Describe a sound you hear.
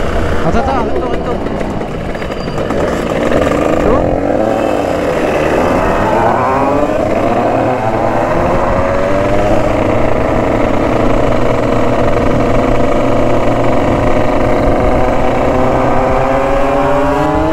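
A motorcycle engine roars up close, revving up and down.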